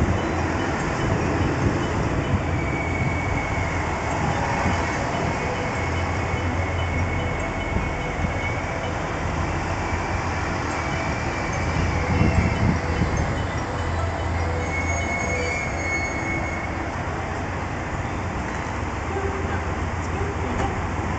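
A train rumbles along the platform, slowing to a stop.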